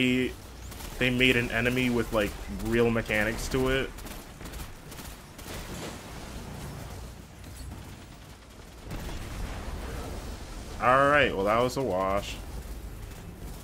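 A heavy gun fires rapid shots.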